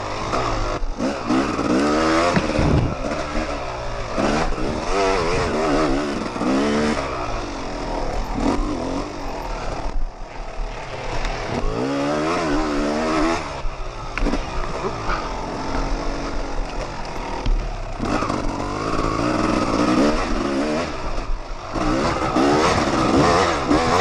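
A dirt bike engine revs up and down hard, close by.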